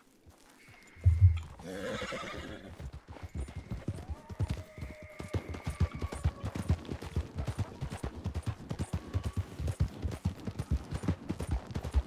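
Horse hooves thud quickly on a dirt trail.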